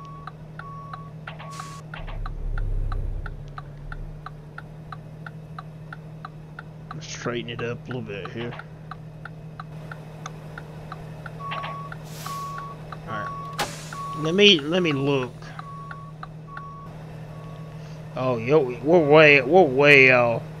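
A truck engine idles with a low steady hum.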